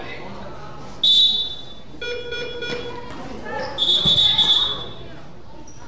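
A referee's whistle blows sharply in a large echoing hall.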